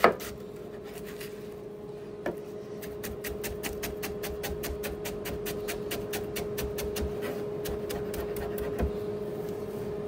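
A knife chops quickly through cabbage on a plastic board.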